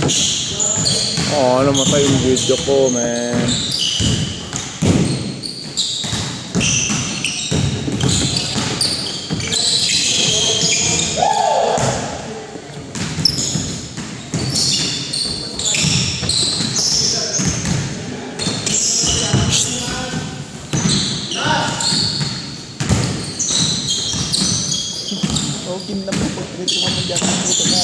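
Sneakers squeak sharply on a wooden floor, echoing in a large hall.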